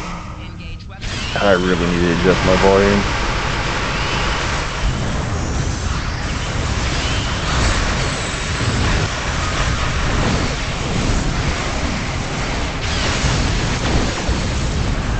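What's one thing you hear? Laser weapons fire in rapid bursts.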